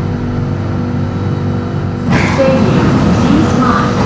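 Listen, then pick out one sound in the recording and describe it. Train doors slide open.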